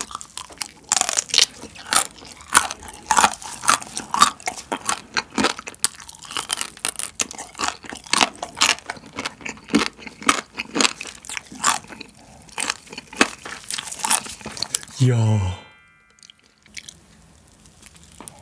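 A young man chews and smacks wetly, close to the microphone.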